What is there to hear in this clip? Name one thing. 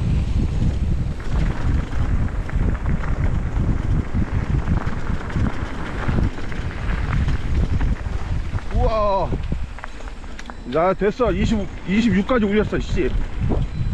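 Bicycle tyres crunch over a rough gravel track.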